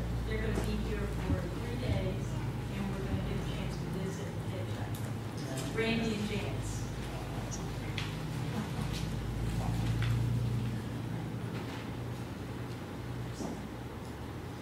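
A man speaks calmly through a microphone in a large, echoing room.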